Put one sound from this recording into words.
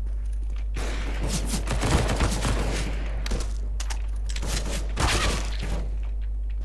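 A submachine gun fires rapid bursts of shots close by.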